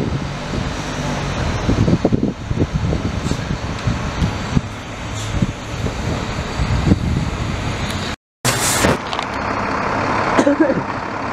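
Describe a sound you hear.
A garbage truck engine rumbles nearby.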